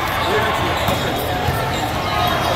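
A volleyball thumps as a player hits it.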